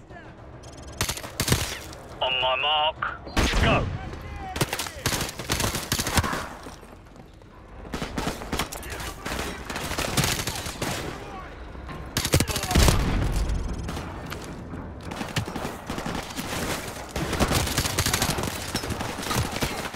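Rapid gunfire rattles close by in bursts.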